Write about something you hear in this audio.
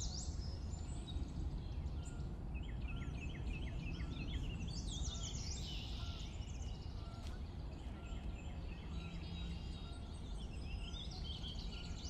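A boat glides steadily across water with a soft splashing rush.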